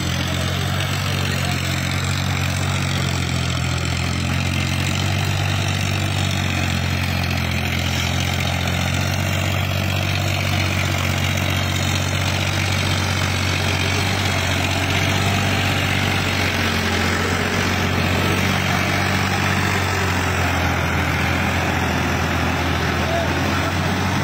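Water splashes under tractor wheels.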